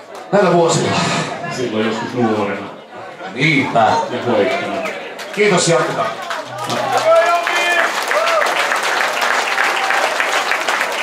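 Electric guitars play amplified through loudspeakers.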